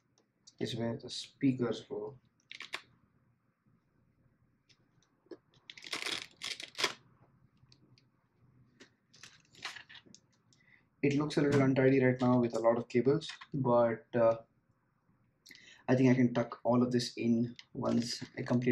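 Plastic parts click and rustle as a helmet is handled.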